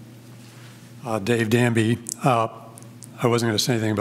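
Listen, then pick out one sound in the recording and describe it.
An elderly man speaks into a microphone with animation.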